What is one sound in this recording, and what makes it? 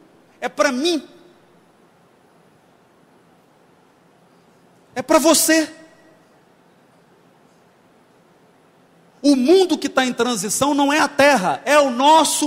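A man speaks loudly and with animation into a microphone, in bursts with long pauses.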